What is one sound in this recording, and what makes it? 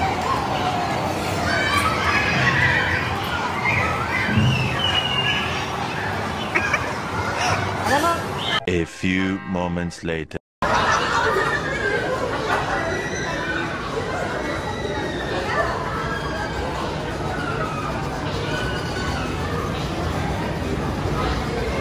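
Many voices chatter in a busy, echoing hall.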